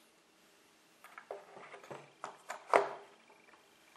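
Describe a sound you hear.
Small plastic parts click and tap close by.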